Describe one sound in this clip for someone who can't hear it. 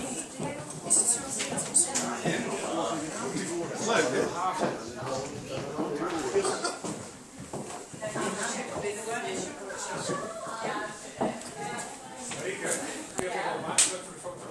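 Several adults talk and chatter close by.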